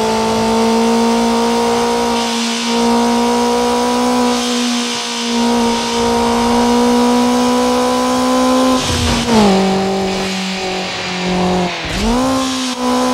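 A race car engine roars at high revs, dropping in pitch as the gears shift.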